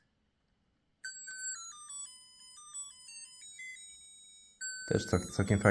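A handheld electronic game plays a beeping tune.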